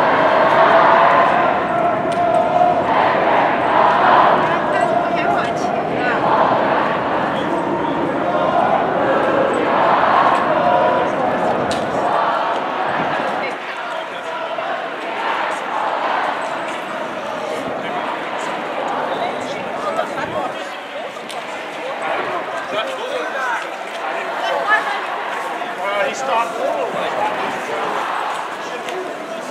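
A crowd of marchers chants and talks outdoors.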